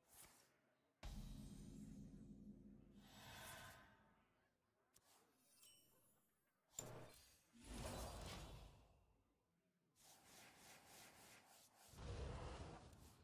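Game sound effects chime and whoosh.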